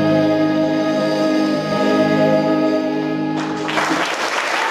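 A group of young people sings together in a large hall.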